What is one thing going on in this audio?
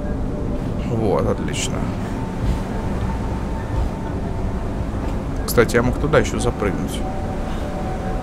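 Steam hisses steadily from a vent.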